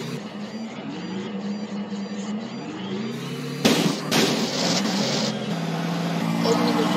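A car engine hums and changes pitch as the car drives.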